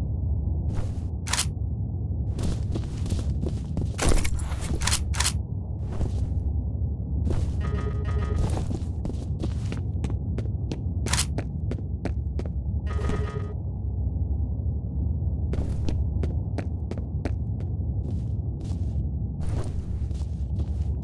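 A low hum drones steadily.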